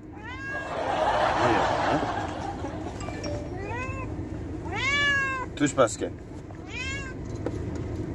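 A cat meows loudly several times, close by.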